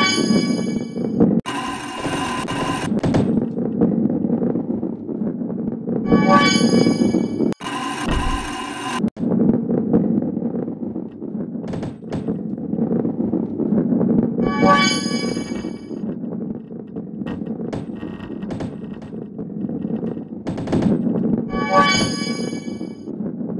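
Boxes crash and scatter with a bright chiming burst.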